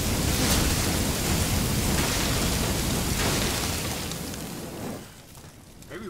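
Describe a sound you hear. A flamethrower roars loudly.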